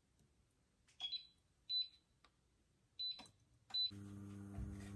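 An electric cooktop beeps several times.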